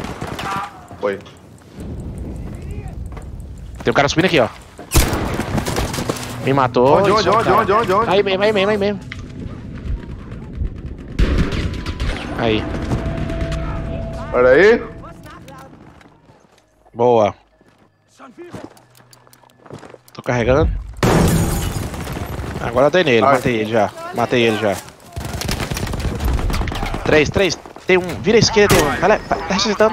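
Gunfire cracks in rapid bursts.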